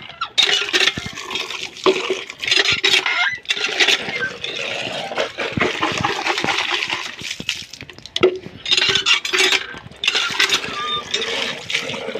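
Water pours into a plastic jug.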